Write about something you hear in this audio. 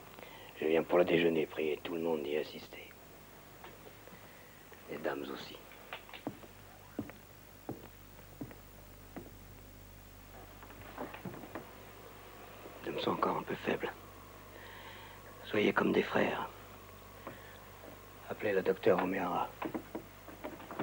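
A man speaks in a low, calm voice, in short phrases with pauses.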